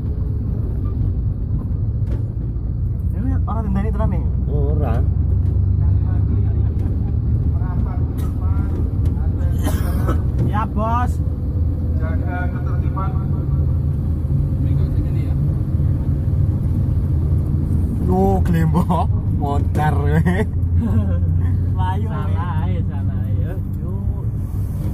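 A car engine rumbles steadily as the car rolls slowly along.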